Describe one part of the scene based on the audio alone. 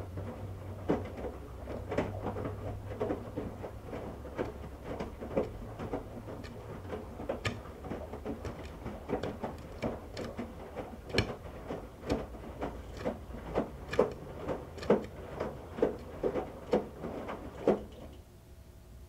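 Wet laundry tumbles and thumps inside a washing machine drum.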